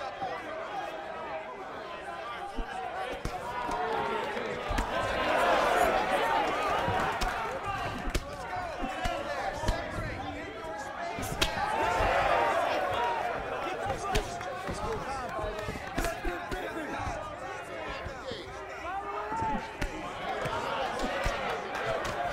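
A crowd cheers and shouts loudly throughout.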